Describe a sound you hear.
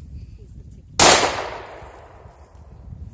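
A pistol fires a single loud shot that echoes through the trees.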